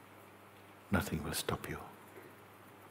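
An elderly man speaks briefly and calmly close to a microphone.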